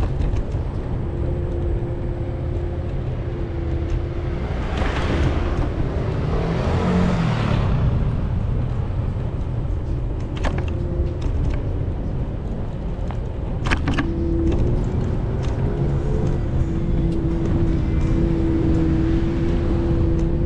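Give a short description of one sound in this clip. Tyres roll on pavement.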